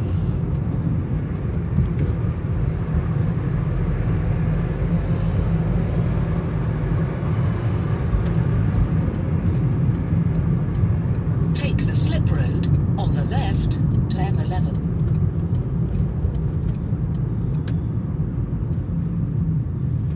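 A car engine hums steadily from inside as the car drives along.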